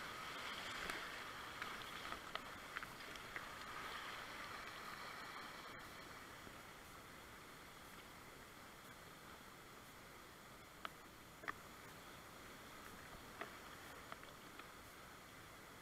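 A paddle splashes in the water.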